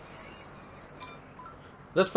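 A short electronic blip sounds as a game menu cursor moves.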